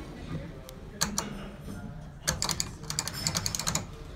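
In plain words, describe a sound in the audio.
A button clicks as a finger presses it.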